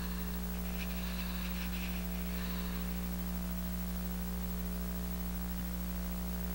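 Fabric rustles softly as a hand tugs at a scarf.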